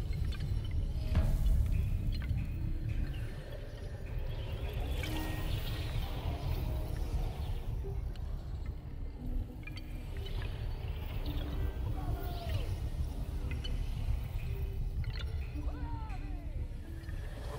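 Low, dark music plays steadily.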